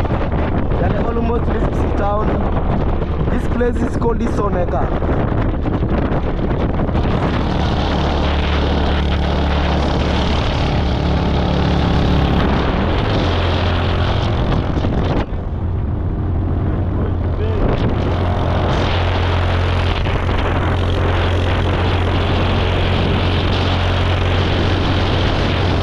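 A motorcycle engine hums steadily as the bike rides along.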